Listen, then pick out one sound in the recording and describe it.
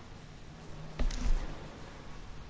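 A car crashes through bushes with a loud thud.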